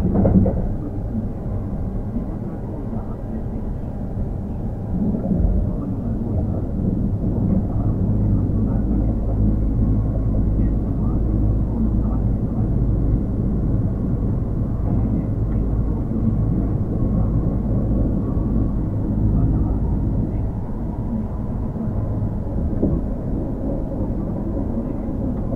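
An electric train hums steadily as it stands idling on the track.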